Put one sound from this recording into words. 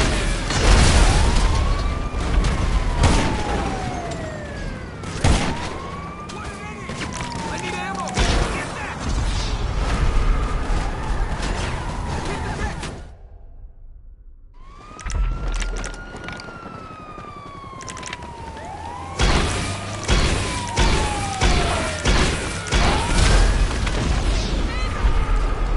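A police siren wails nearby, rising and falling.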